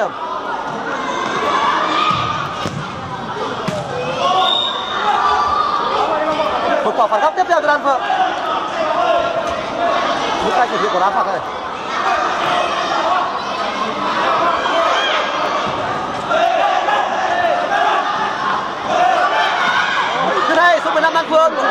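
Children shout to each other across an echoing indoor hall.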